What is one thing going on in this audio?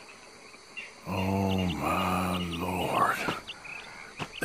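A man speaks in a low, strained voice.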